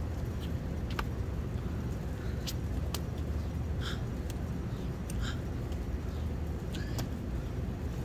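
Hands slap and shift on paving stones.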